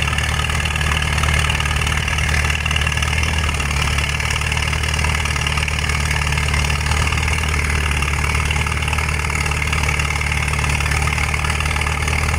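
A vintage farm tractor engine labours under load as it pulls a weight sled outdoors.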